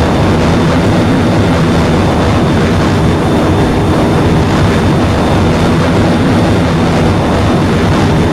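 A jet engine roars steadily with a deep rumble.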